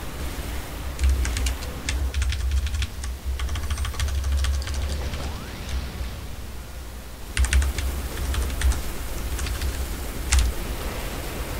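Game attack effects crackle and boom in rapid bursts.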